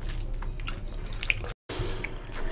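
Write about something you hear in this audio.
Fingers squish and mix wet rice and curry.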